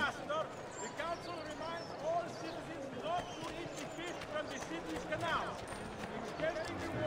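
Footsteps walk and run quickly over stone paving.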